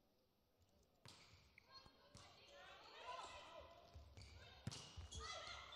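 A volleyball is struck hard with sharp slaps.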